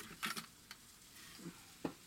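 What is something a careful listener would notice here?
A plastic toy clicks and rattles as a hand moves it.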